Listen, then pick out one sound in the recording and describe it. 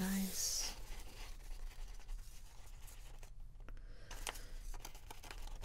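Paper rustles and crinkles as hands lift and peel a page.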